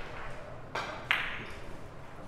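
A cue strikes a billiard ball with a sharp tap.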